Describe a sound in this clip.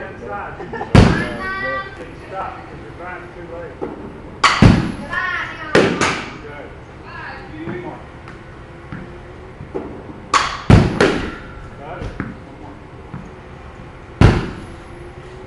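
A bat cracks sharply against a ball, ringing in a large echoing hall.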